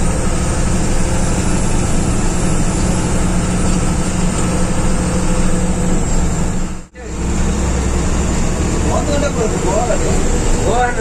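A bus engine rumbles steadily while driving.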